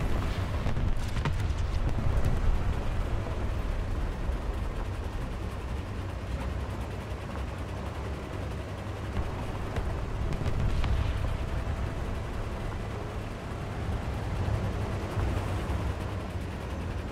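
Tank tracks clatter and squeak over sand.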